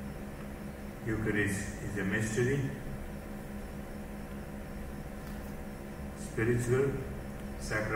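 An elderly man speaks slowly and calmly into a microphone, heard through loudspeakers in a large room.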